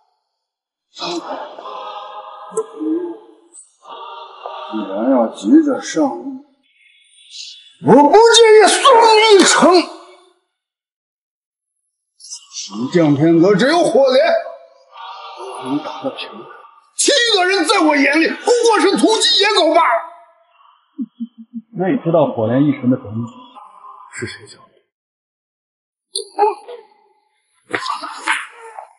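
A middle-aged man speaks nearby with a taunting, animated tone.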